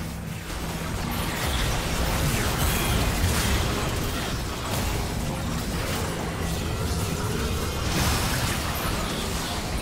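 Game spells whoosh and blast during a busy fight.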